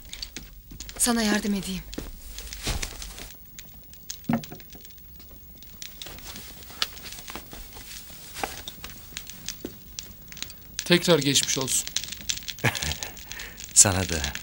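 Another man answers in a calm voice.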